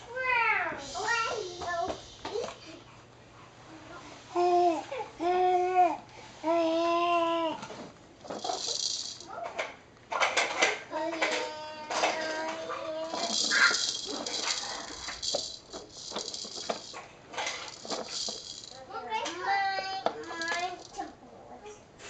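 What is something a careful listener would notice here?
A baby babbles and squeals up close.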